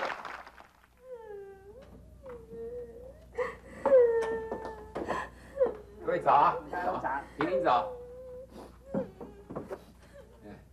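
A young woman sobs and wails loudly.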